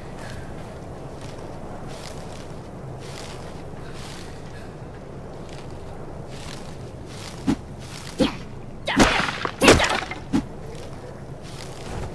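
Leafy plants rustle and snap as they are picked.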